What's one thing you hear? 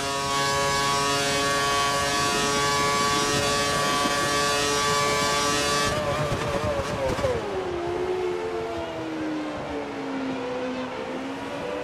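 A racing car engine screams at high revs, then drops in pitch as the car slows for a corner.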